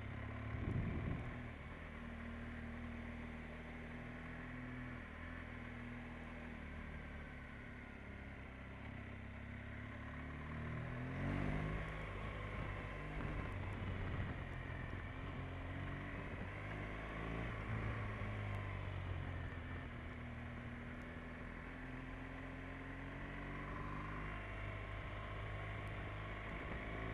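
A motorcycle engine hums steadily and rises and falls in pitch.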